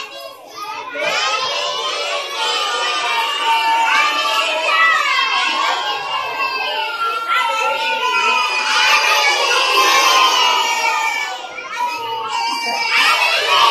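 A crowd of young children sings loudly together.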